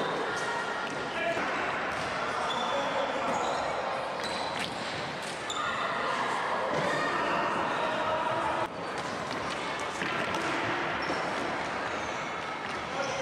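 Young players shout and call out in an echoing hall.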